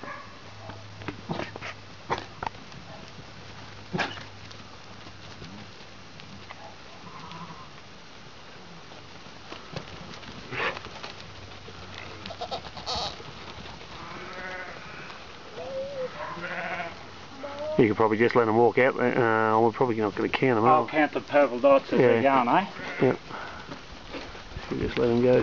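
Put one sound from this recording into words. Hooves shuffle and patter on dirt.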